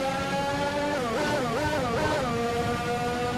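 A racing car engine drops and rises in pitch as it shifts down and back up.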